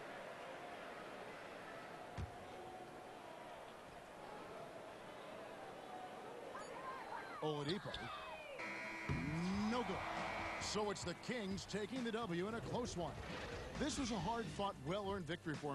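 A large crowd cheers and murmurs in a big arena.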